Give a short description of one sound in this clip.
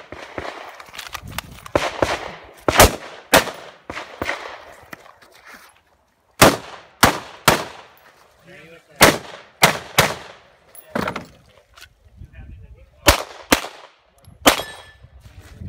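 Gunshots crack loudly outdoors, one after another, with short echoes.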